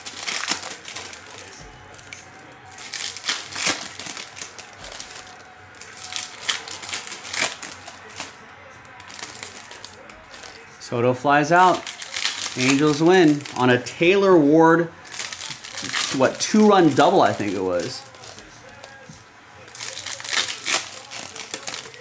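Foil card wrappers crinkle and rustle as packs are torn open.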